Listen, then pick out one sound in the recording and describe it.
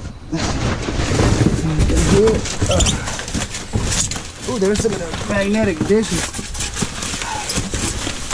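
Cardboard boxes scrape and thump as they are shoved aside.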